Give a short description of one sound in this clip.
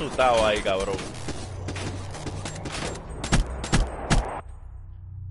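Rapid gunshots crack loudly in quick bursts.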